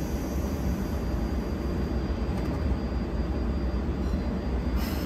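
A stationary train hums steadily with a low drone.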